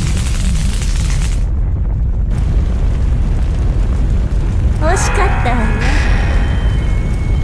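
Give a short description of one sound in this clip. A spaceship engine rumbles deeply and steadily.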